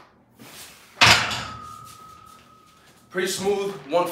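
A loaded barbell clanks down onto a metal rack and rings briefly.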